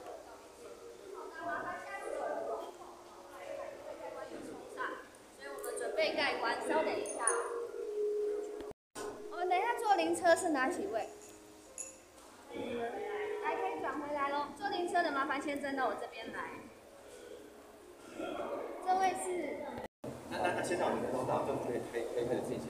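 A crowd of men and women murmur and talk.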